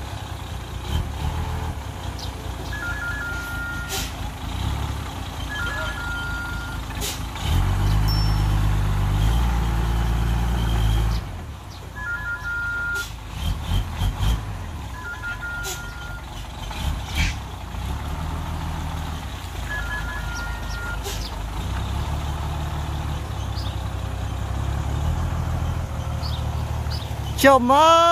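A diesel truck engine rumbles and revs close by.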